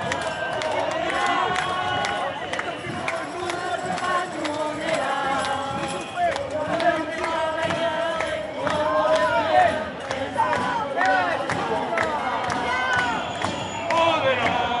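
A large crowd chants and shouts together outdoors.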